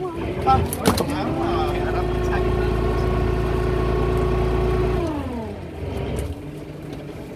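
A winch motor whines, rising in pitch, holding steady, then winding down.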